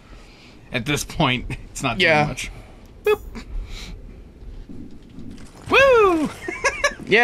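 A second man talks and laughs through a microphone.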